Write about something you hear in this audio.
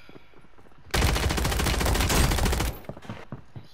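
A rifle fires in a rapid, loud burst.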